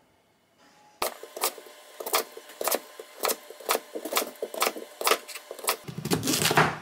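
A kitchen knife chops through sweet potato onto a wooden cutting board.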